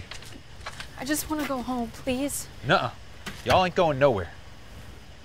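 A young woman speaks close by.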